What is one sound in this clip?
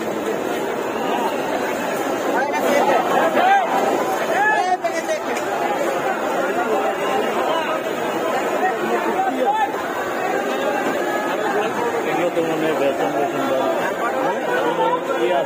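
A busy crowd chatters all around outdoors.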